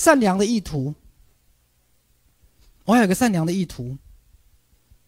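A man speaks loudly and with animation through a microphone.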